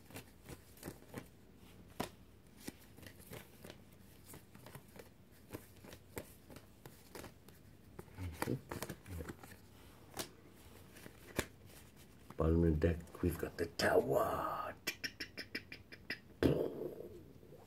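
Playing cards shuffle and tap in a man's hands.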